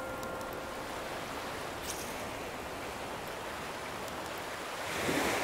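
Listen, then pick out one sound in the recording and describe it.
Gentle waves wash onto a shore.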